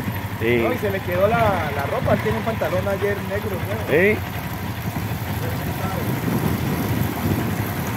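A motorbike engine idles and putters.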